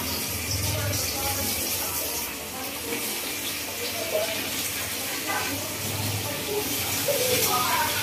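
A metal spoon scrapes and clinks inside a metal pot.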